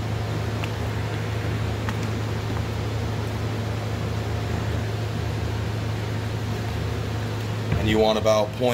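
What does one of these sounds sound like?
An ultrasonic cleaner hums steadily with a low buzz.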